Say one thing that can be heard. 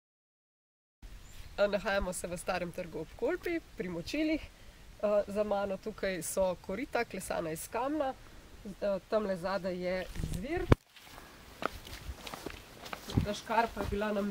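A young woman speaks with animation close to a microphone, outdoors.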